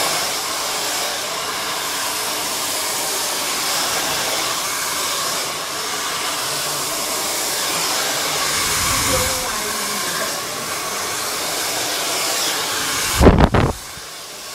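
A hair dryer blows steadily close by.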